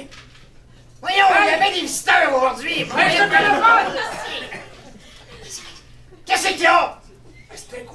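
A man speaks loudly and with animation in a room.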